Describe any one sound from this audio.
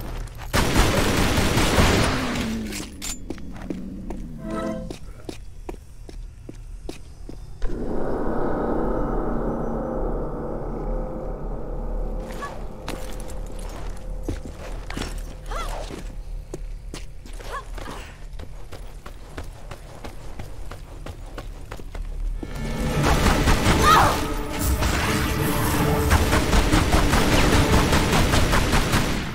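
Pistol shots fire in rapid bursts.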